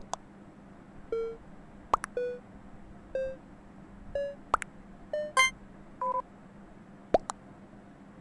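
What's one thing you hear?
Sharp electronic clicks sound now and then.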